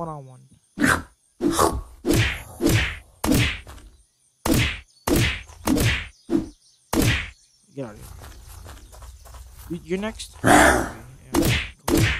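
A shotgun fires loud blasts again and again.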